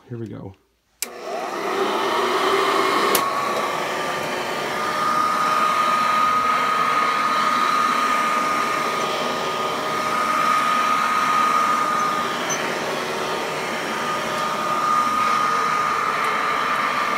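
A vacuum cleaner switches on, its motor whines up to speed and runs steadily.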